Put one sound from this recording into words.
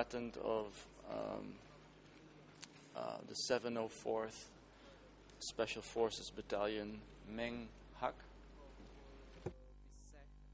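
A middle-aged man reads out calmly into a microphone.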